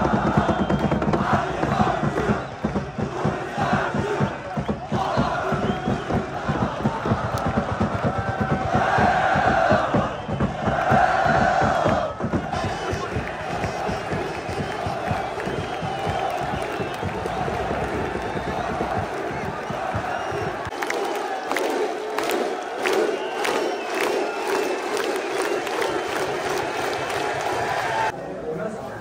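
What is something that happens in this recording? A large stadium crowd chants and cheers.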